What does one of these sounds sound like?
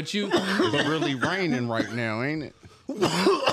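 A man sings loudly and playfully into a close microphone.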